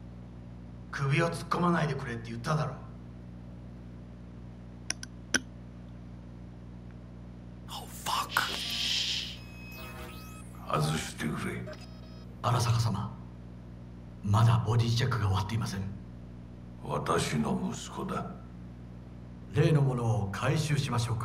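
A man speaks calmly in a low voice, close by.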